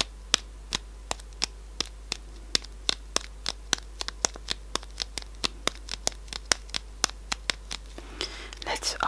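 Fingernails tap and click on a cardboard box close up.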